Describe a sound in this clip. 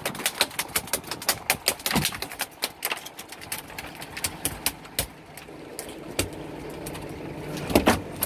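A fishing line reel clicks rapidly as line is pulled in.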